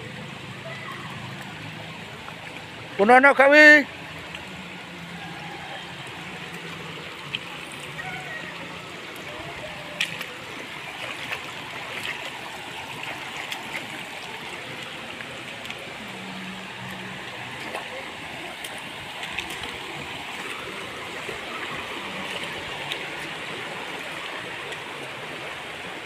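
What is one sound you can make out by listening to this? A shallow stream trickles and babbles over rocks outdoors.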